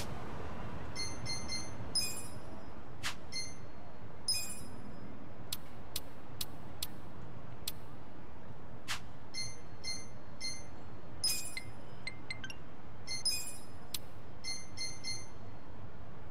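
Short electronic menu chimes beep in quick succession.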